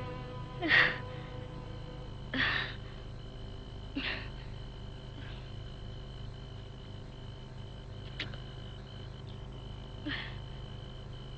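A woman sobs and wails in short bursts.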